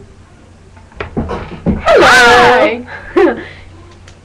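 Two young women talk excitedly close to a microphone.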